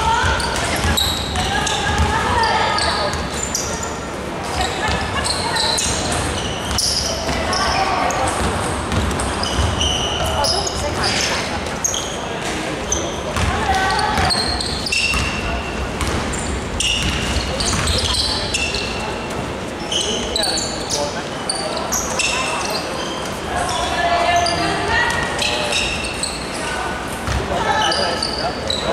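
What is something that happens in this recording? Young women shout and call out to each other across the court.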